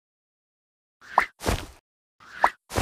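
Short whooshing pops sound as bubbles are launched.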